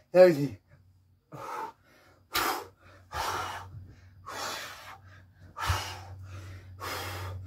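A man exhales hard in short bursts.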